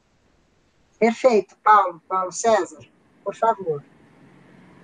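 An elderly woman speaks over an online call.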